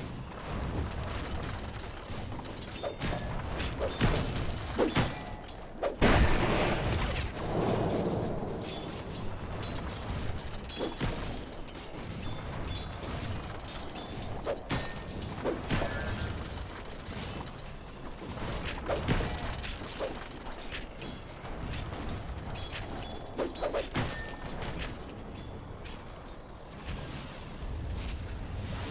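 Game characters clash in battle with clanging hits and spell blasts.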